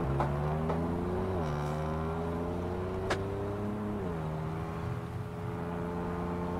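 A truck engine drones steadily, dropping in pitch as it shifts gears.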